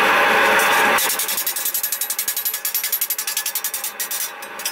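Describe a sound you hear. A hammer taps rapidly on sheet metal, ringing brightly.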